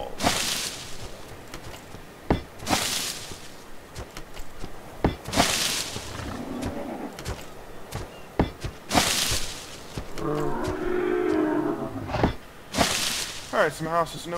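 A thatch wall is pulled down with a short rustling whoosh.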